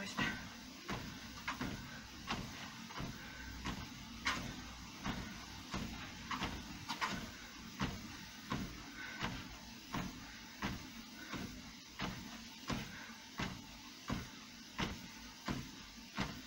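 Feet pound steadily on a running treadmill.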